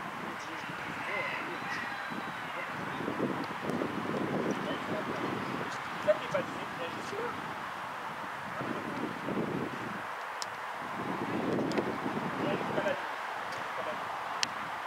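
Young players call out to each other from a distance outdoors.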